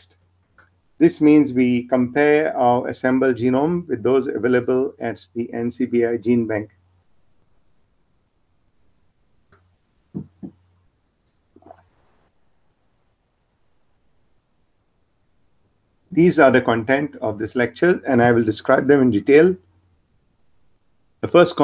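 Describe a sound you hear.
A man speaks calmly into a microphone, heard over an online call.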